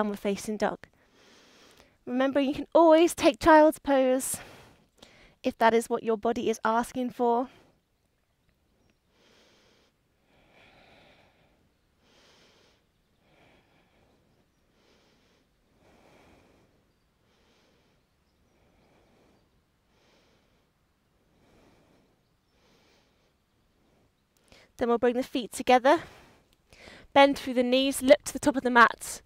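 A young woman speaks calmly and clearly into a close microphone, with pauses.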